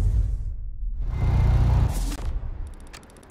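A car engine revs loudly.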